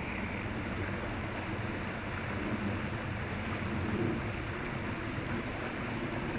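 A creek trickles softly nearby.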